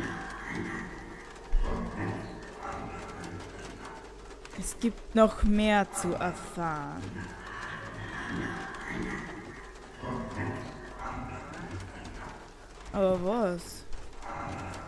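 A woman talks with animation close to a microphone.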